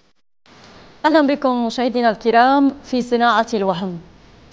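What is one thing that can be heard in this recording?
A young woman speaks calmly and clearly into a microphone, like a news presenter.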